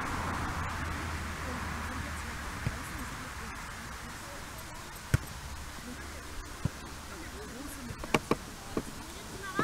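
Young men shout in the distance across an open field.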